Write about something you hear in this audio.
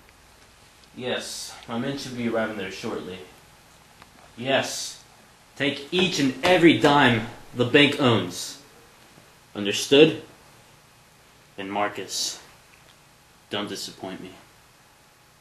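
A teenager talks into a phone close by, in short bursts.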